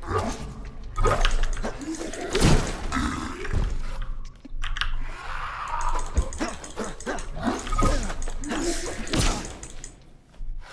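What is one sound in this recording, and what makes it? Blows thud and crack in a fight.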